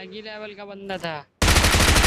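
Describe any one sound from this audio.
An automatic rifle fires in a video game.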